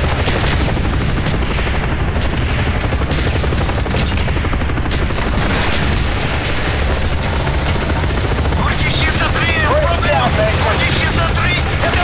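A helicopter's rotor thumps steadily and loudly.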